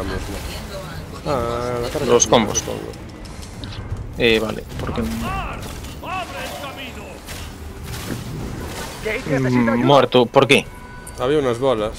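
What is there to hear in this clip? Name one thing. Energy blasts crackle and boom in a fast fight.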